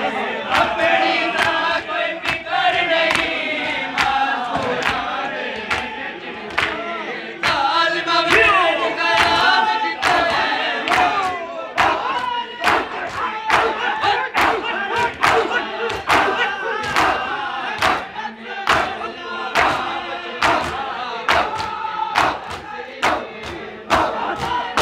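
A crowd of men chants and sings loudly outdoors.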